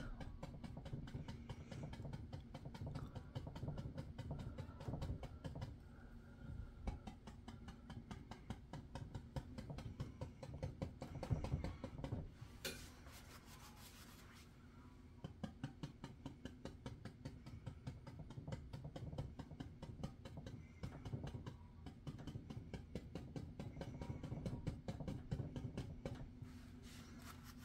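A dry brush scrubs and swishes across canvas.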